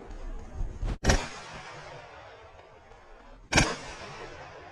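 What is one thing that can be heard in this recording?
A shotgun fires loud blasts that echo outdoors.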